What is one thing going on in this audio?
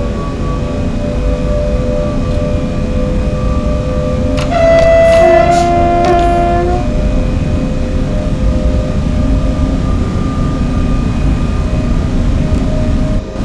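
An electric train motor hums with a steady whine as it gathers speed.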